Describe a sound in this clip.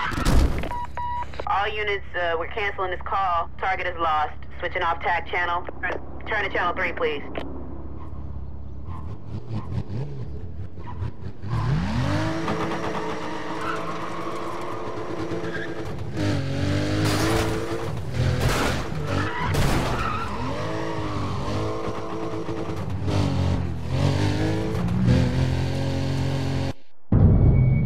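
A car engine revs and roars loudly.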